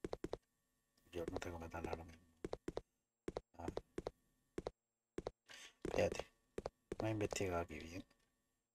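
A man talks with animation through a microphone, close by.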